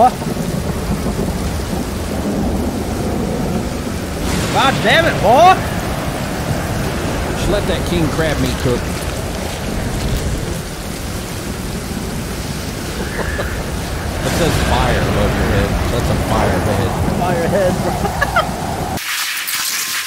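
Sea waves roar and wash steadily.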